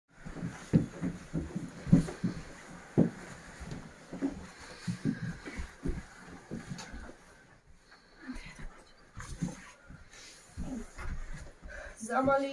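Footsteps thud and shuffle on a floor indoors.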